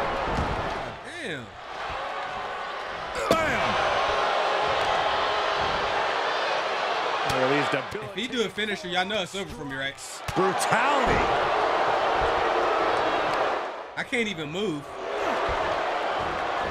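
A large crowd roars and cheers steadily in an arena.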